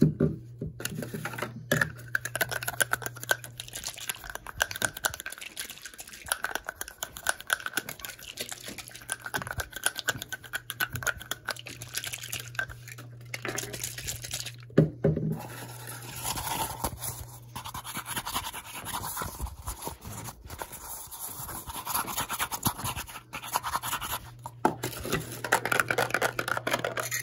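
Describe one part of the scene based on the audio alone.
Fabric rustles and rubs close by.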